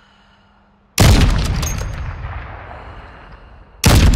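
A rifle fires a single loud shot that echoes and slowly fades.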